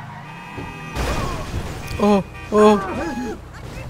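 A car crashes into a roadside barrier with a loud thud.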